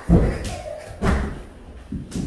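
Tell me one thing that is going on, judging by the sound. A child's body thumps onto a hard floor.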